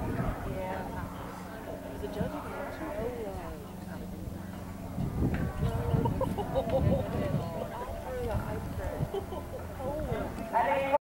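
A horse's hooves thud softly on loose dirt.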